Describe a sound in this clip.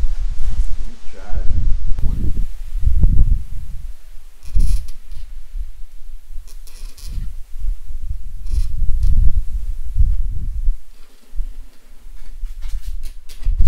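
A blade scratches along a plastic sheet.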